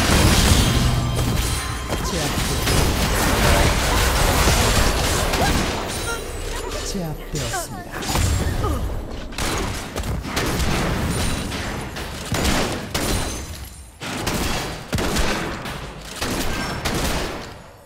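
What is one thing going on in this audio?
Game spell effects burst and crackle in a fight.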